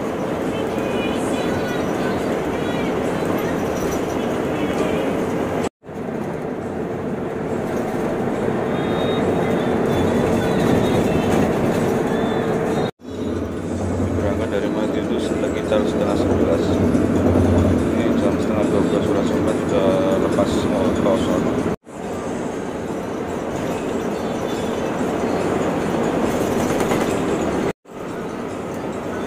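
A bus engine hums and tyres roar steadily on a highway.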